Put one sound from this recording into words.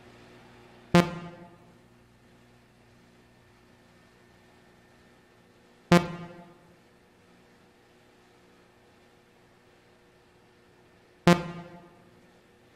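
A computer terminal gives a short ringing beep each time an option is picked.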